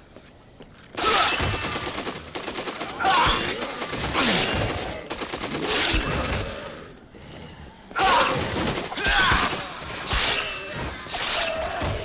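A blade slashes and hacks into bodies.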